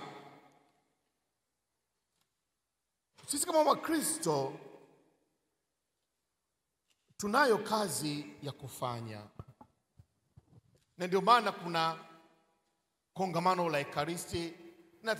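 A man speaks slowly into a microphone, heard through loudspeakers in a large echoing hall.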